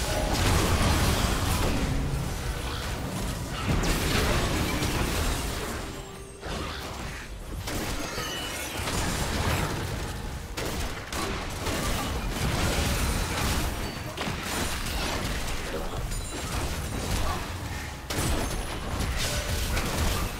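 Spell effects and weapon hits crackle and burst in a busy video game fight.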